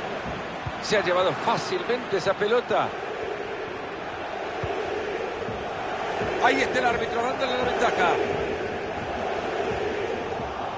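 A large stadium crowd roars steadily in the distance.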